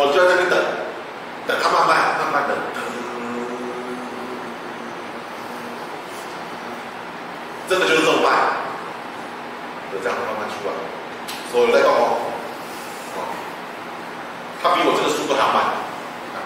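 A man lectures in bursts with animation, his voice echoing in a room.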